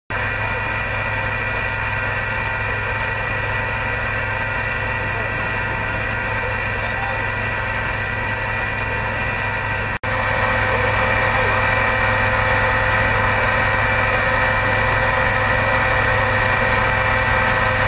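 A fire engine's pump engine drones steadily close by.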